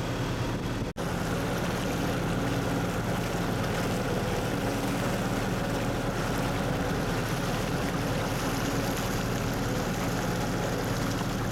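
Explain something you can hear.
Water rushes and churns in a boat's wake.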